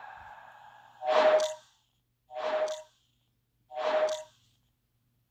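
A short electronic chime sounds three times as players join.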